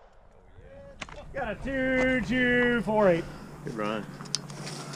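A rifle magazine clatters out and clicks into place.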